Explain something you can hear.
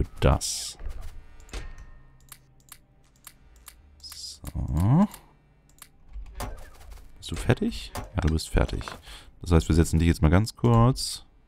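Soft interface clicks sound as game menus open and close.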